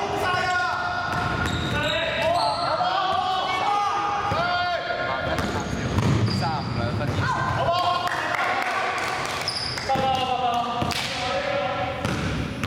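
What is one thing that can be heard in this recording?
A basketball thumps as it bounces on the floor.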